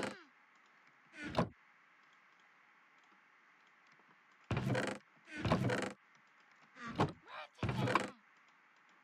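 A wooden chest creaks open and thuds shut.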